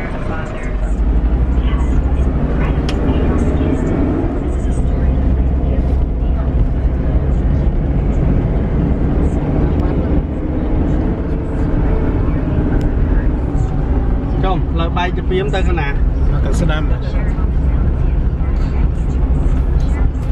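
A vehicle engine rumbles steadily as it drives.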